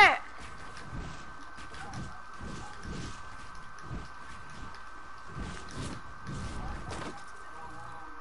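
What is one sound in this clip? Quick thuds and clacks of footsteps and building pieces sound in a video game.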